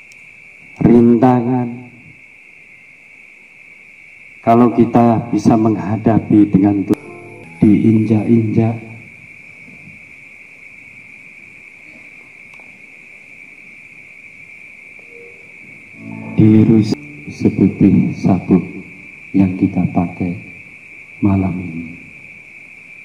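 A man speaks loudly through a microphone in short bursts.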